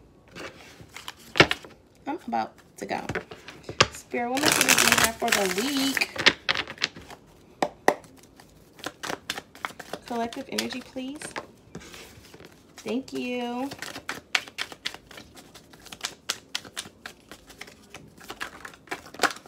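Cards shuffle and riffle in a young woman's hands.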